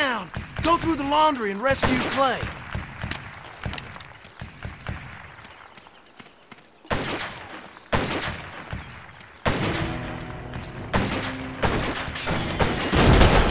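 Boots thud on the ground while running.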